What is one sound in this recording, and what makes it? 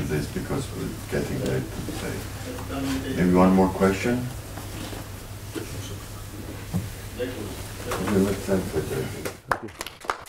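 An elderly man speaks to an audience through a microphone.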